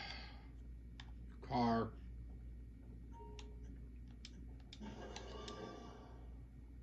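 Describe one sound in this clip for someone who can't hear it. A video game plays short clicks and tones through a television speaker.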